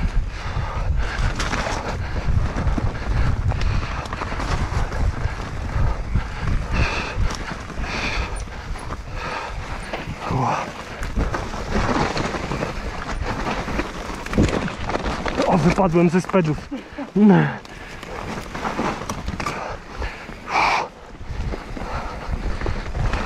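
Wind buffets past outdoors.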